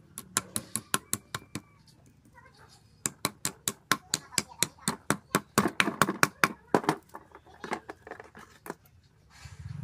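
A small hammer taps nails into wood in quick, sharp knocks.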